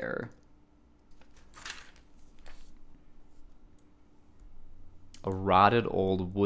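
Glossy pages rustle as a hand turns them.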